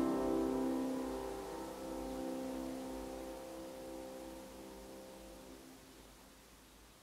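A grand piano plays a chord that rings out and slowly fades.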